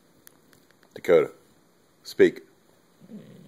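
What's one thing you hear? A dog barks loudly twice close by.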